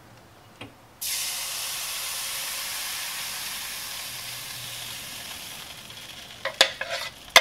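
Batter sizzles loudly as it pours into a hot pan, then slowly quiets.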